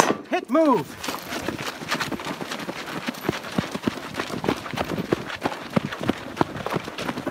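Boots crunch on dirt as a man runs.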